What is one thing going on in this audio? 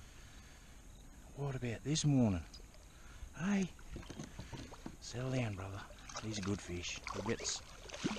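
A fish splashes and thrashes at the water's surface close by.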